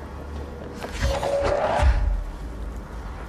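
A heavy object crashes down with a loud thud.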